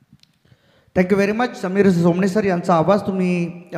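A man commentates with animation through a microphone.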